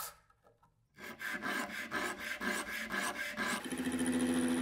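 A metal nut rubs back and forth on sandpaper in quick strokes.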